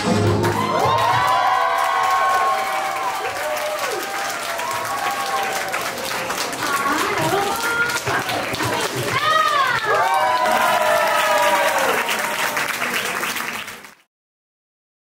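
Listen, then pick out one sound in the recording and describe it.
A crowd of young men and women cheers and whoops loudly.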